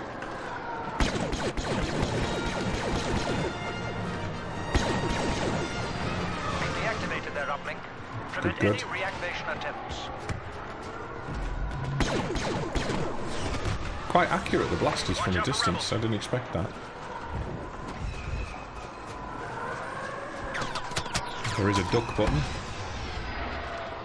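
Blaster rifle shots fire in quick bursts.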